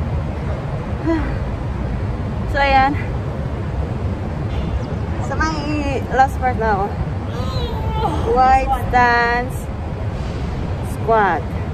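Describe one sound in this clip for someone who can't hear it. A young woman speaks close by in short, lively bursts.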